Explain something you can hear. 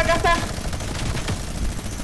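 A gun fires a burst of shots.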